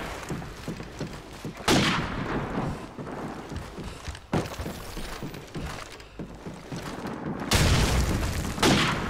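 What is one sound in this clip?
Footsteps thud on wooden floorboards.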